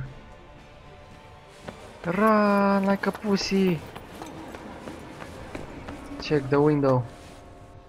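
Footsteps run across a hard stone floor.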